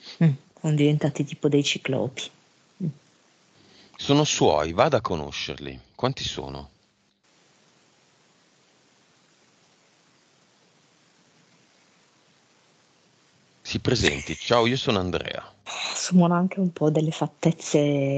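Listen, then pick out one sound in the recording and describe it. A man talks calmly into a headset microphone, heard as on an online call.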